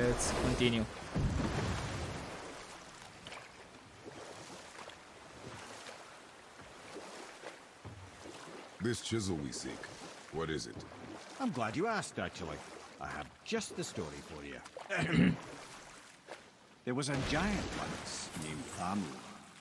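Water laps and swishes against a moving boat.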